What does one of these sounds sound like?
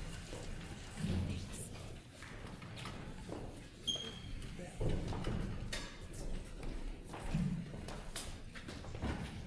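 People murmur and chat quietly in the background.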